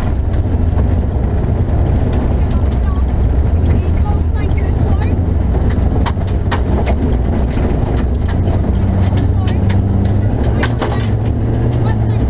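A rally car engine roars loudly from inside the cabin.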